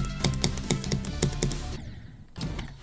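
Fast electronic game music plays with a pounding beat and stops abruptly.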